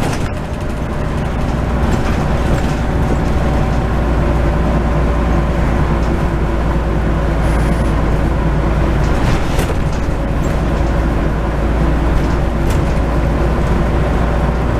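A bus engine hums and rumbles steadily as the bus drives along.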